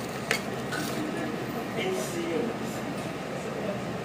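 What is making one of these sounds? An elderly man slurps and chews food close by.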